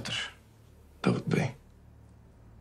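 An older man speaks in a deep, serious voice.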